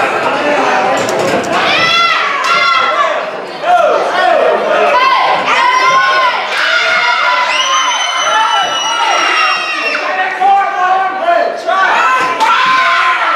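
A crowd of men and women shout and cheer in a large room.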